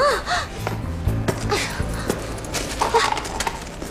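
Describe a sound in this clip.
A bag's contents rustle and clatter as they are emptied onto a hard floor.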